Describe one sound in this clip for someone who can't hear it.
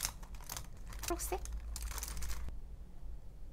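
Plastic pens clatter against each other.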